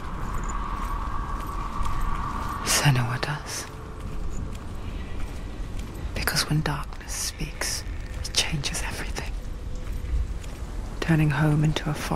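Footsteps tread on soft, damp ground.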